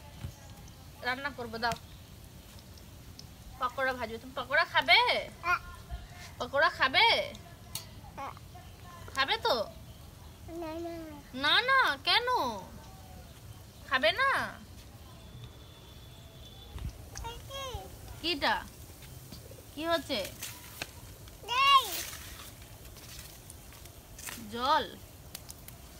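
A toddler babbles and chatters close by.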